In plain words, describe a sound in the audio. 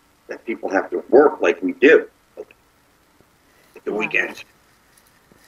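A man talks calmly over an online call.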